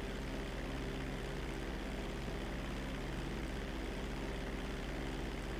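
Propeller engines drone steadily as a plane flies.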